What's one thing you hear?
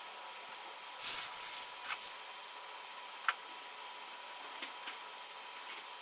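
A plastic sack crinkles and rustles as it is handled.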